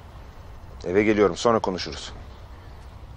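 A man speaks quietly into a phone.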